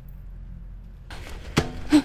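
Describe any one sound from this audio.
A man walks through dry leaves.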